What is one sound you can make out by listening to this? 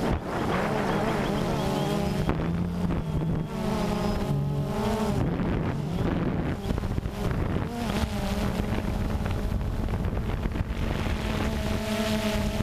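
Drone propellers whine and buzz close by, shifting up and down in pitch.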